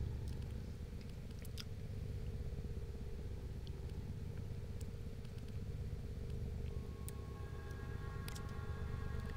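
Short menu clicks tick as a selection moves from item to item.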